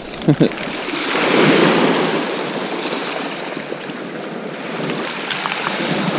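Waves break and wash over a shingle beach.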